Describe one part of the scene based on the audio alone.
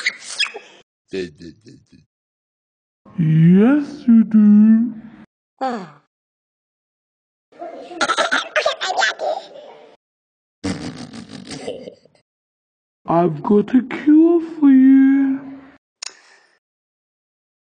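A cartoon dog talks in a deep, goofy voice.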